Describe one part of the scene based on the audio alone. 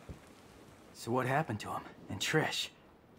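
A young man speaks in a low, tense voice close by.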